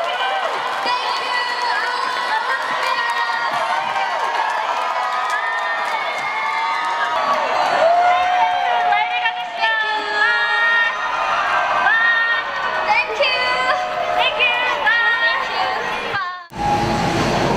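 Young women call out cheerfully through microphones in a large echoing hall.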